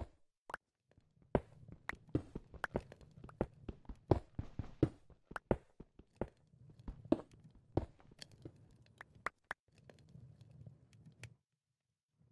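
Stone blocks crumble and break.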